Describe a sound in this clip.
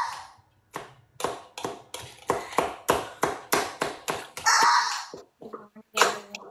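A knife chops herbs on a cutting board with quick, rapid taps.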